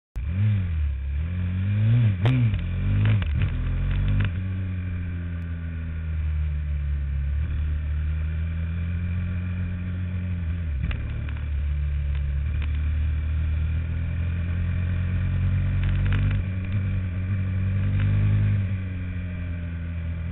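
A small engine roars close by, its pitch rising and falling as it speeds up and slows down.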